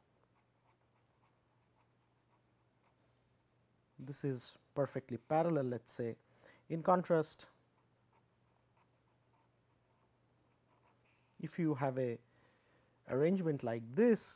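A pen scratches softly on paper.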